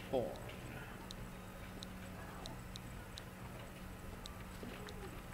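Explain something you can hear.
Soft menu blips tick as a cursor moves.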